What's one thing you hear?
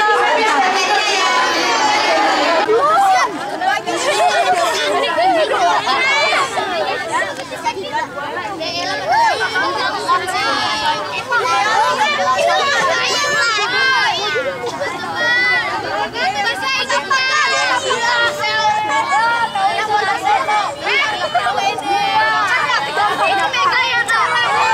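Many children chatter and shout all around, close by.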